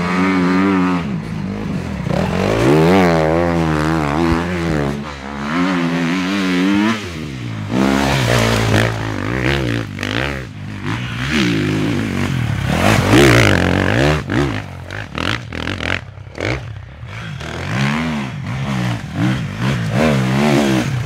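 A dirt bike engine revs hard and roars up and down close by.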